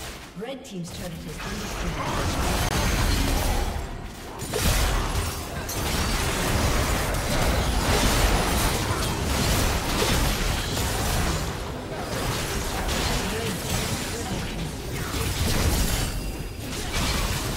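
Spell blasts and hits crackle and boom in a video game battle.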